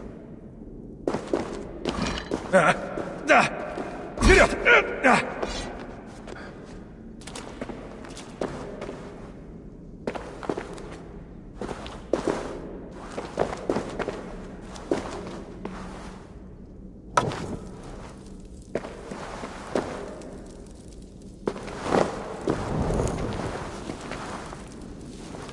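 Footsteps thud on stone.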